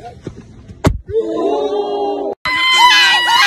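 Several young people shout together close by.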